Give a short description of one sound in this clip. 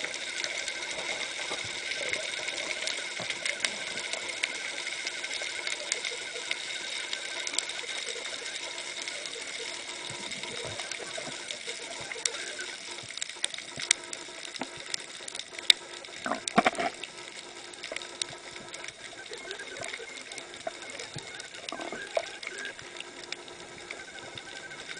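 Faint clicks and crackles sound steadily underwater.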